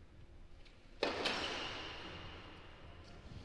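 A racket strikes a tennis ball sharply, echoing through a large hall.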